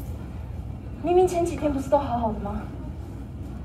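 A woman speaks with emotion nearby.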